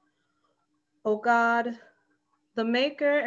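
A woman chants slowly, heard through an online call.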